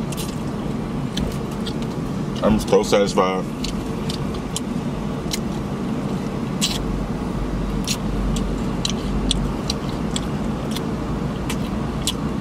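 A man chews crunchy fried food loudly, close up.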